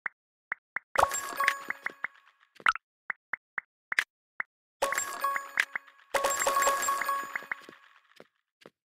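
A bright game chime rings out with a ringing tail.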